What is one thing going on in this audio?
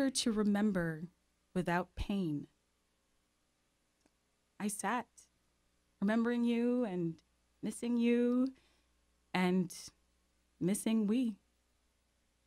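A woman reads aloud calmly into a microphone, with pauses between phrases.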